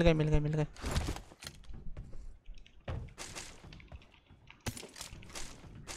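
Gear is picked up with short rustling clicks.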